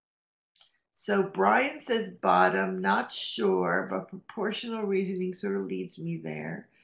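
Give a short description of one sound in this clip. A woman speaks clearly and calmly through an online call microphone.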